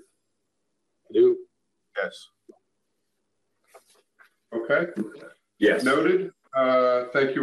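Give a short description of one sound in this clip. A second man answers briefly over an online call.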